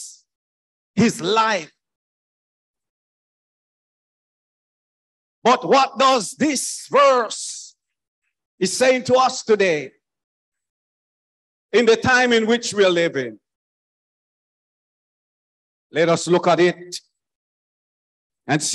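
A middle-aged man preaches with animation into a microphone, in short bursts with long pauses.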